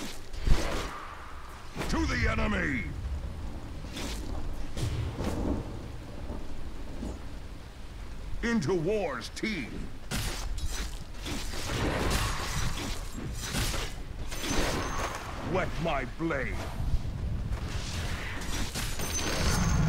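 Game characters clash in battle with sword hits and spell effects.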